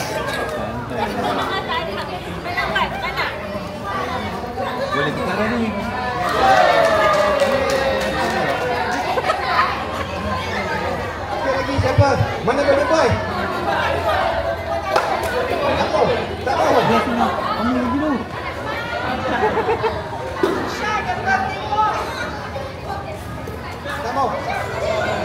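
Children chatter and shout.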